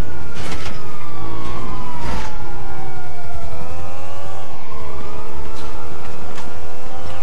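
A motorcycle engine revs and roars.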